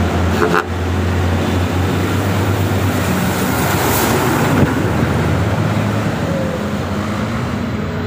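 A motorcycle engine putters past close by.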